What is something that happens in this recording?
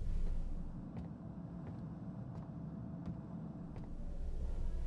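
Footsteps tread slowly and evenly on a floor.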